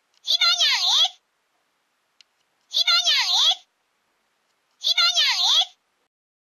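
A toy's small speaker plays a short, bright electronic sound three times.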